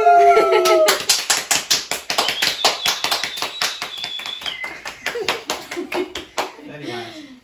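A young woman claps her hands quickly and steadily.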